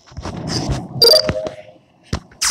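A short electronic chime sounds as a card is accepted.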